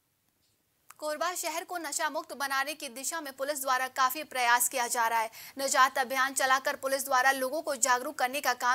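A young woman speaks clearly and steadily into a microphone.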